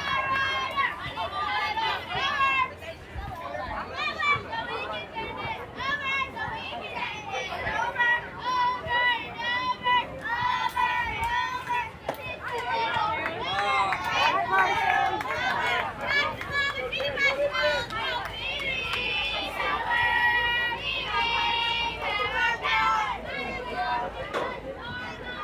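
Young girls chant and cheer loudly nearby.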